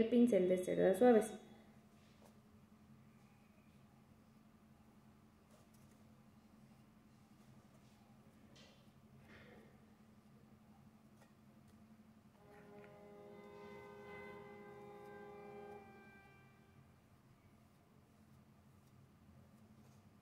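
A paintbrush brushes softly on cardboard.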